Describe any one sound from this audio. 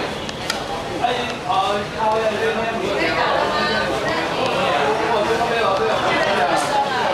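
Several men chatter and call out nearby outdoors.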